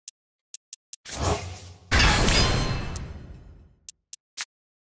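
A loud whooshing burst swells and slowly fades.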